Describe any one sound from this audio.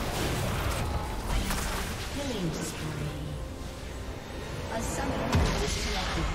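Magic spells crackle and whoosh in a noisy battle.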